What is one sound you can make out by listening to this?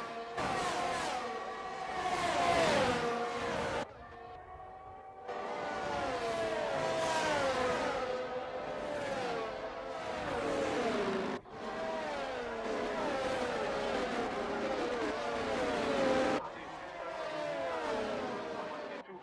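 Racing car engines whine loudly, shifting pitch as the cars pass and change gear.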